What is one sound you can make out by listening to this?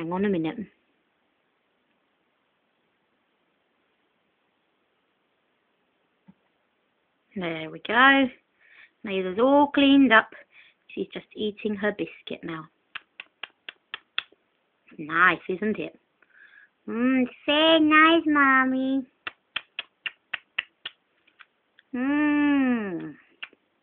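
A toddler babbles and chatters close by.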